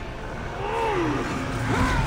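A magical burst shimmers and whooshes.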